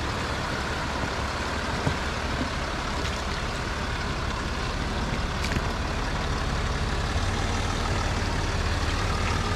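A stream of water trickles and splashes over rocks.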